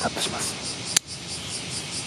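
Pruning shears snip through twigs.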